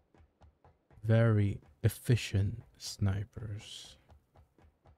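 A man speaks loudly and with animation into a close microphone.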